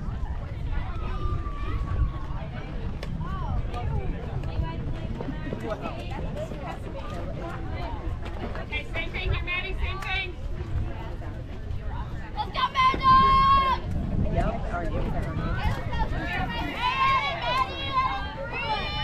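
Young women shout and cheer from close by, outdoors.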